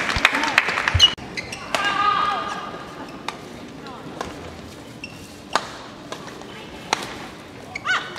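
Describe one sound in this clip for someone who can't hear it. A shuttlecock is struck sharply with a racket again and again.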